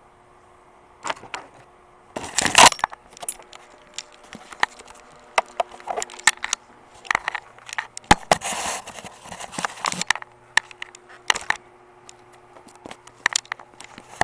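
A phone is handled roughly, with knocks and rubbing close by.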